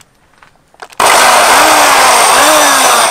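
A power drill whirs loudly, its pitch dipping and rising.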